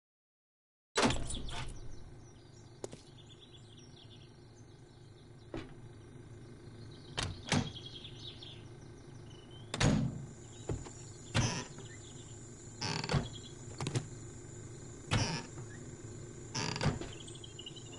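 Short clicks and thuds sound now and then.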